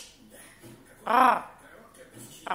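A small dog yips playfully.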